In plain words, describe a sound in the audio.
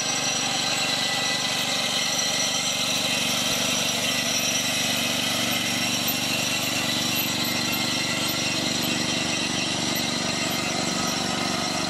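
A small farm machine's engine chugs steadily.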